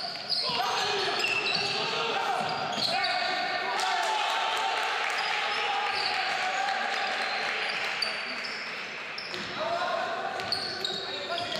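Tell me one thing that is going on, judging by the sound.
A basketball bounces on the court.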